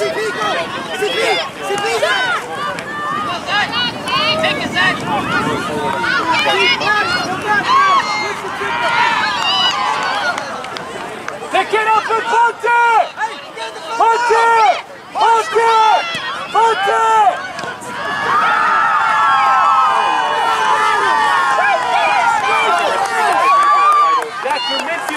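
A crowd of men and women on the sideline shout and cheer loudly outdoors.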